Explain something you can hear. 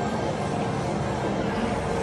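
Footsteps shuffle along a hard floor.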